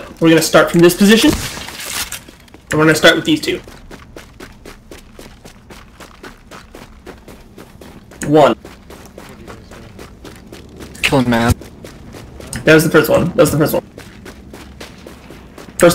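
Footsteps crunch quickly on snow as a person runs.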